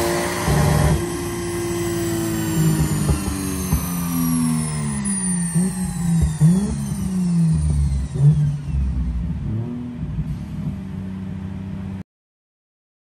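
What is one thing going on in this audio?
A car engine revs loudly, its pitch rising and falling as gears change.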